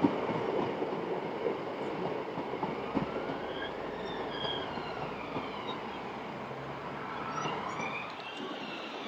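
A diesel train rumbles along the tracks.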